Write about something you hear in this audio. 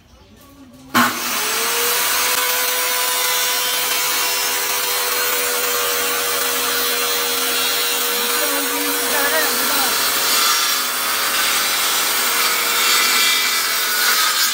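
A power saw whines loudly as it cuts through a board.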